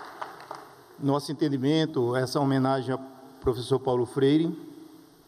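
A man speaks calmly into a microphone, heard through loudspeakers.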